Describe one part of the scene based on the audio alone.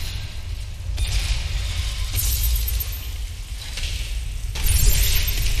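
Explosions boom with a deep rumble.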